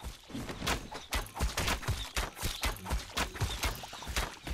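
A sword hits a small creature with sharp impacts.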